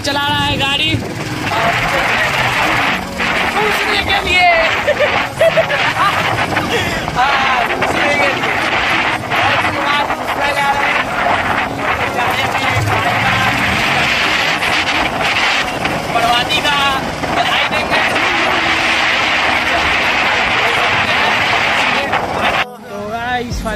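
Strong wind rushes loudly over the microphone while riding.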